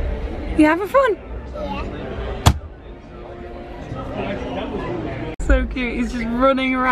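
A young child speaks excitedly close by.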